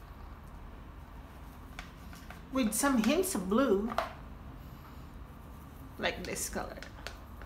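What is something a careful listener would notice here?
A paintbrush dabs and swirls softly in paint on a plastic palette.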